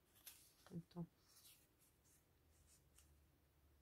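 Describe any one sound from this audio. Paper rustles softly as it is handled close by.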